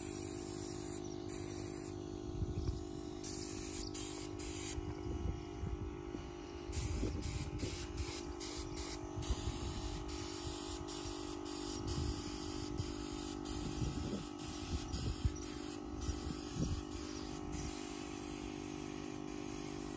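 A paint spray gun hisses in bursts.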